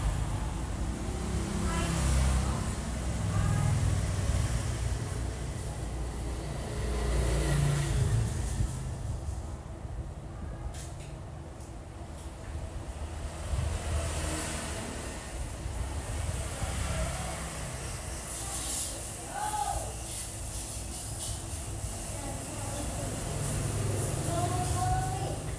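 Small packages rustle and tap as they are handled on a counter.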